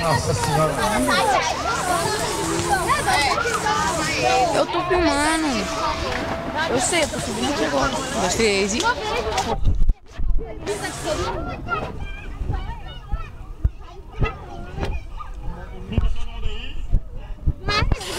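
A crowd of children and adults chatter and shout in a pool outdoors.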